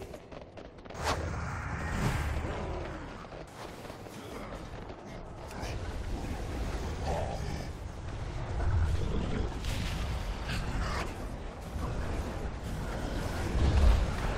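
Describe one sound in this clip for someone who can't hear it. Weapon blows and spell effects crash loudly in a fight.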